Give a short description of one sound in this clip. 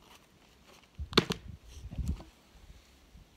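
Wooden hive parts knock and clatter.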